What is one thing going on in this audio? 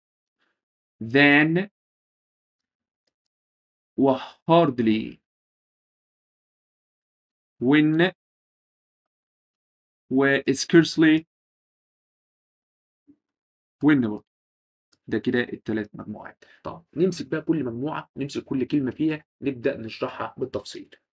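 A young man speaks calmly into a close microphone, in short phrases with pauses.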